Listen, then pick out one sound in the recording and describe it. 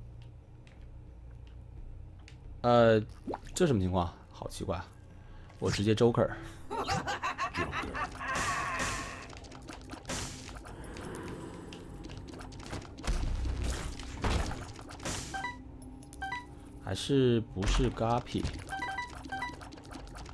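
Video game sound effects pop, splat and chime in quick bursts.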